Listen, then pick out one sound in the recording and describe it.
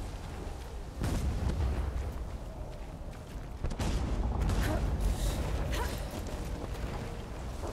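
Footsteps run over dirt and wooden boards.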